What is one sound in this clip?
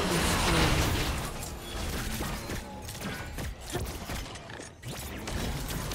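Game spell effects and attacks crackle and zap in quick bursts.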